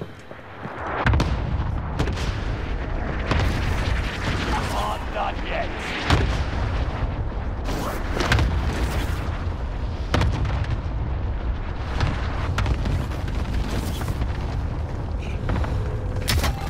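Wind rushes loudly and steadily during a fall through the air.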